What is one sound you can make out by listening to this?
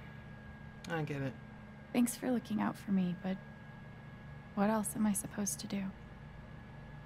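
A young woman answers softly and hesitantly.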